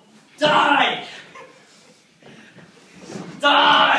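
A couch thuds as it tips over.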